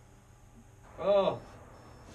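A young man shouts in fright.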